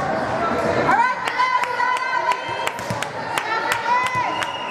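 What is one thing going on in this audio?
A volleyball is served with a hand slap.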